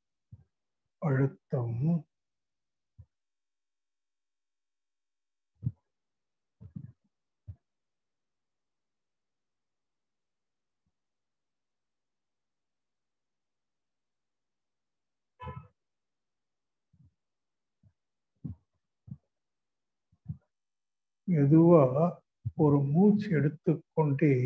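An elderly man speaks slowly and calmly into a microphone, with long pauses.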